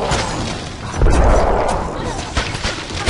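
A magic blast bursts with a loud rumbling roar.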